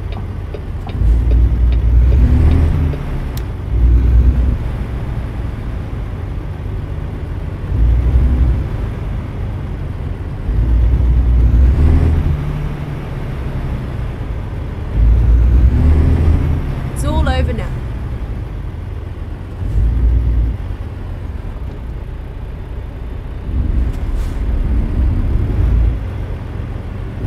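A truck's diesel engine rumbles low, its revs rising and falling in surges.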